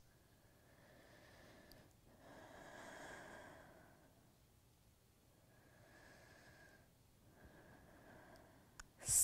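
A young woman breathes slowly and deeply.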